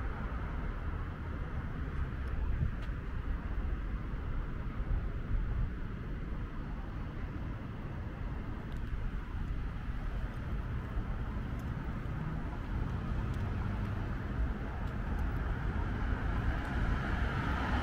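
A vehicle's engine hums and its tyres roll steadily on the road.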